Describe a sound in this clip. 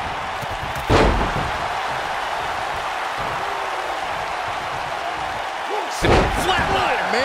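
A heavy body thuds onto a wrestling ring mat.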